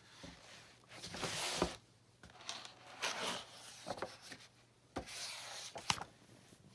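Book pages rustle and flip as they turn.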